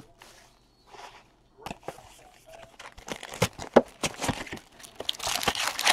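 A cardboard box is handled and its lid is flipped open.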